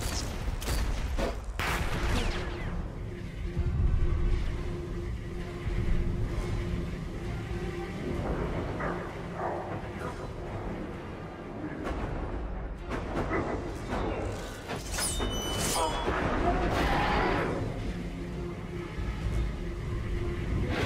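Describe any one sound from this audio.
A large monster growls and snarls.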